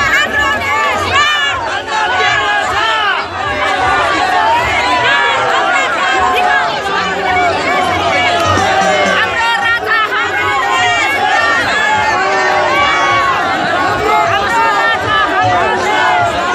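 A large crowd of men talks and shouts all at once, close by and outdoors.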